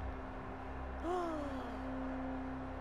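A wolf yelps sharply.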